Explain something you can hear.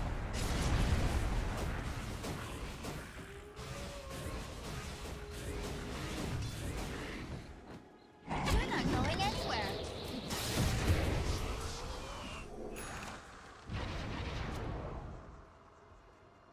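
Game spells and blows crash and whoosh in a busy fight.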